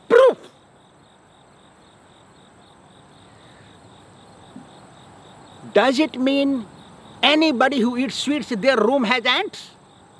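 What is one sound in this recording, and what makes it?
An elderly man speaks with animation, close by, outdoors.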